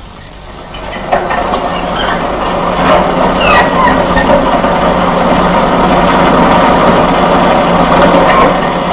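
A bus engine rumbles as the bus drives closer.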